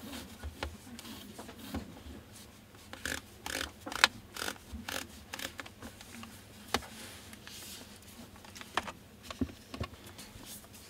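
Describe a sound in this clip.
A lens ring clicks as it is turned.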